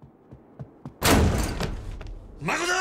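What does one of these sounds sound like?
Heavy double doors burst open with a loud bang.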